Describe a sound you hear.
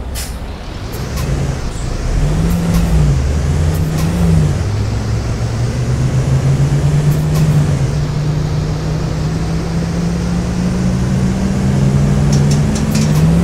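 A bus engine revs up and rises in pitch as the bus pulls away.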